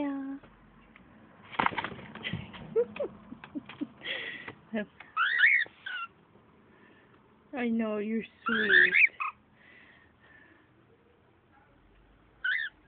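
A cockatiel whistles and chirps up close.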